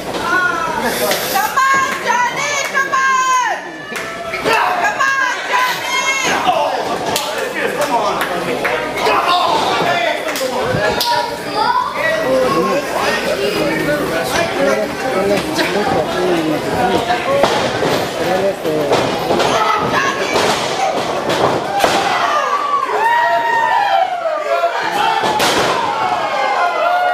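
A crowd of men and women shouts and cheers nearby in an echoing hall.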